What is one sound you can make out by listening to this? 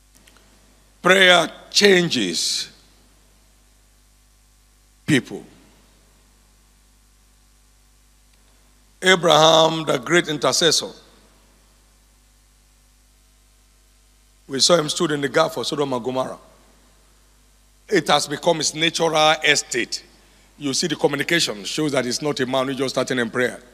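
A man speaks through a microphone in bursts, with animation, in a large echoing hall.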